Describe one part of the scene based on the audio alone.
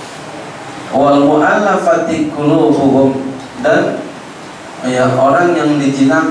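A man speaks calmly through a headset microphone, with pauses.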